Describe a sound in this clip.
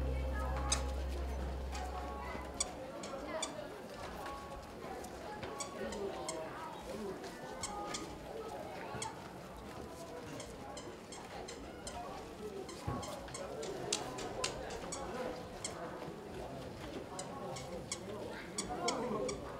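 Porcelain tea cups and a lid clink lightly.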